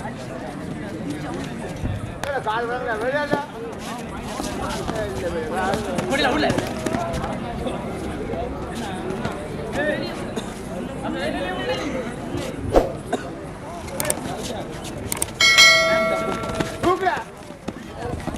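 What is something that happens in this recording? A young man chants rapidly and repeatedly.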